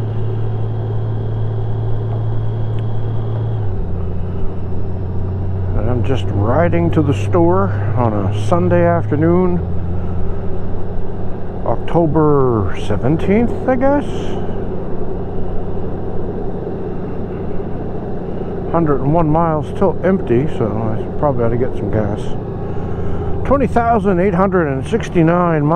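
A motorcycle engine hums steadily as the bike rides along.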